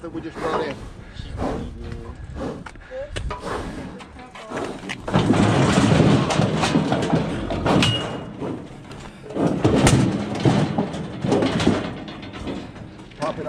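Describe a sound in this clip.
Metal gates of a livestock chute clank and rattle close by.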